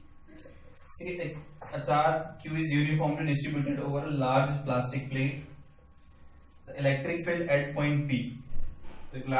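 A young man speaks calmly and clearly nearby.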